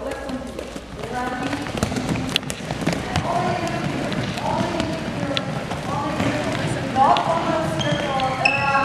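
Balls bounce repeatedly on a wooden floor.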